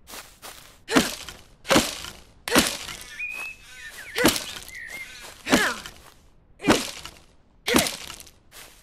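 An axe chops sharply at wood several times.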